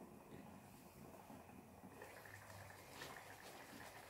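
A metal lid clinks as it is lifted off a pot.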